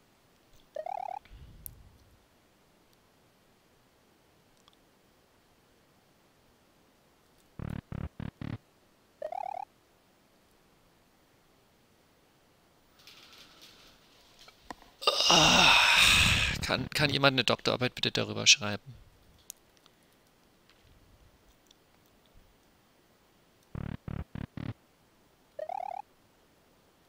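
Short electronic game chimes and blips sound now and then.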